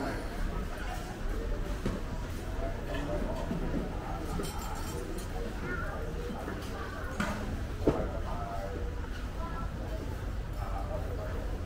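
Sandals slap softly on the floor as people walk.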